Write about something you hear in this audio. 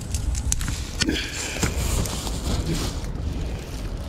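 A plastic bag crinkles close by.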